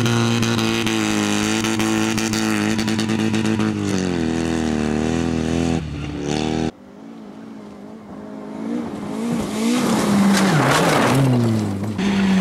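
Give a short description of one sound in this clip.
Gravel sprays and crunches under skidding tyres.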